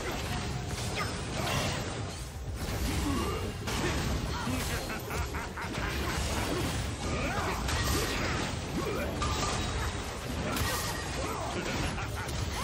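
Magic spells blast and crackle in a hectic fight.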